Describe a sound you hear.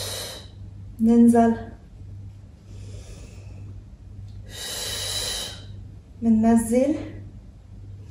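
A young woman speaks a few short words nearby.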